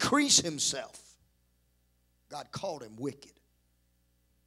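A man preaches with animation through a microphone, in short bursts.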